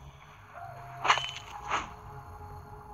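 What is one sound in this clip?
Sharp blows land with quick thuds in a fight with a wolf.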